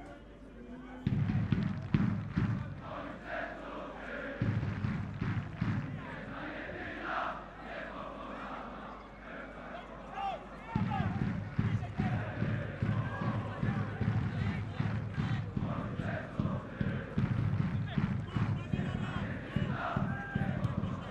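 A large crowd chants loudly in a stadium.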